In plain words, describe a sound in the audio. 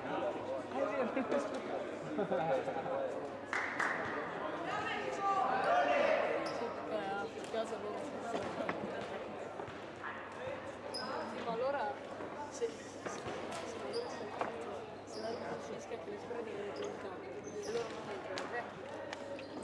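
Players call out to each other loudly across the court.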